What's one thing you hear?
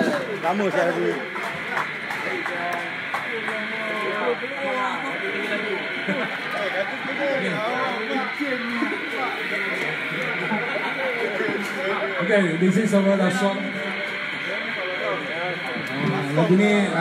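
An electric bass plays along through loudspeakers.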